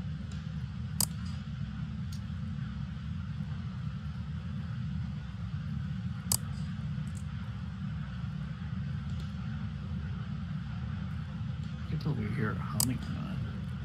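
A flashlight switch clicks.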